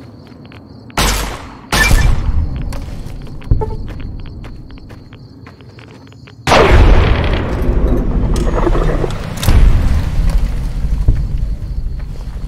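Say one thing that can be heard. A heavy gun fires in loud bursts.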